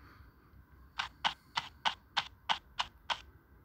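Quick electronic shooting effects sound in rapid succession.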